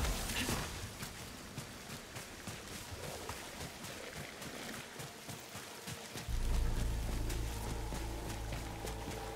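Footsteps tread quickly on hard ground.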